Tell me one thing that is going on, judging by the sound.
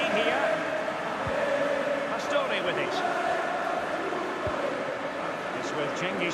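A large crowd cheers and chants steadily in a stadium.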